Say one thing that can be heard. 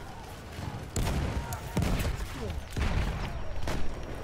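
A shotgun fires.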